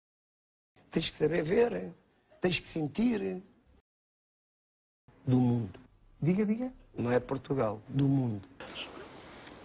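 A middle-aged man speaks with animation on a television broadcast.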